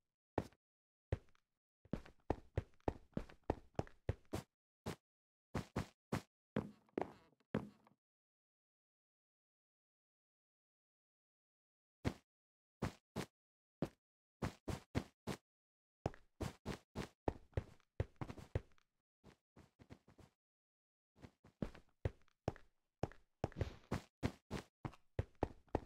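Blocks are placed one after another with quick, soft clicking thuds.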